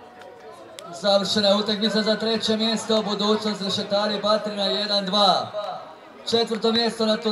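A group of young players sings and chants loudly together.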